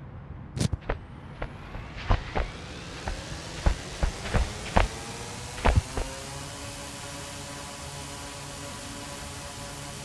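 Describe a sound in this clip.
A drone's propellers whir steadily and rise in pitch.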